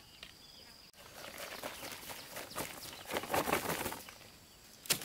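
Powder pours from a sack with a soft hiss.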